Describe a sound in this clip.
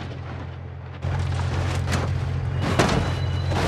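Fire roars and crackles after the crash.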